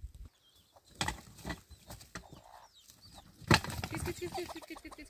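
A metal wheelbarrow rattles and clanks as it is pushed over rough, stony ground.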